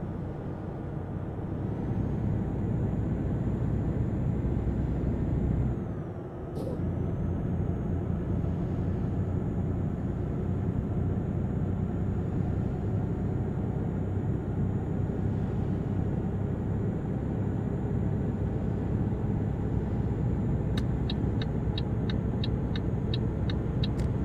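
Tyres roar on a motorway road.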